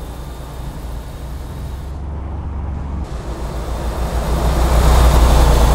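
A heavy truck engine rumbles steadily and grows louder.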